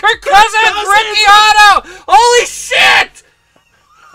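A man shouts excitedly into a microphone close by.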